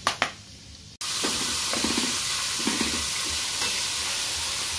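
Food sizzles and crackles as it fries in hot oil.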